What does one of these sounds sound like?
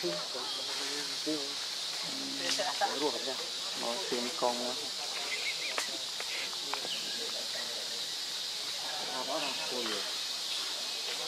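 A baby monkey whimpers and squeals up close.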